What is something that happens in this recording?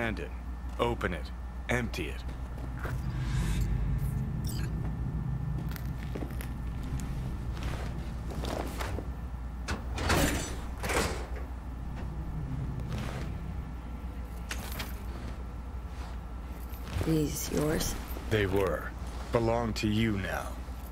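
A young man speaks calmly into a headset microphone.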